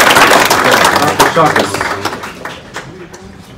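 A crowd in a room cheers loudly, then quickly quiets down.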